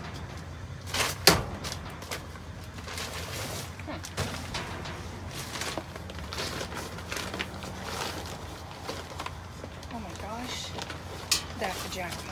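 A plastic bag rustles and crinkles as a grabber stick pokes it.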